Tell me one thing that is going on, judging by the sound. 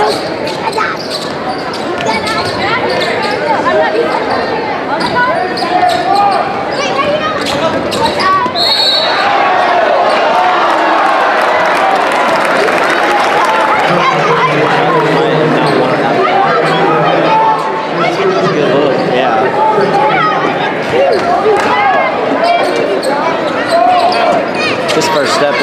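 A crowd cheers and chatters throughout in a large echoing gym.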